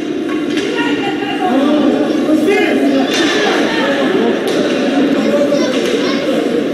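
Skates scrape and hockey sticks clack on the ice.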